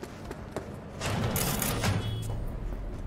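A metal door slides open with a hiss.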